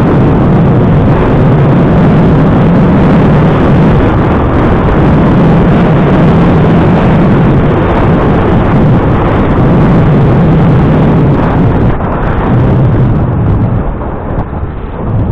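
Wind rushes and buffets loudly against a moving vehicle.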